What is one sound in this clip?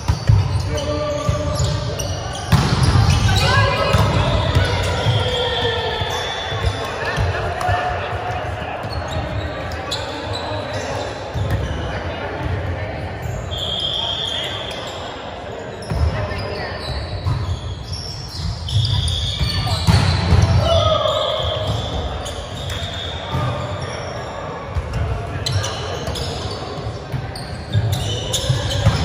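Young men and women shout and call out across a large echoing hall.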